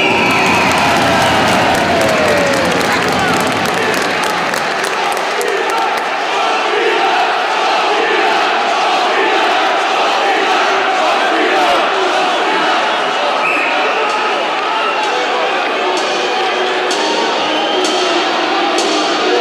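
A large crowd cheers and chants loudly in an echoing arena.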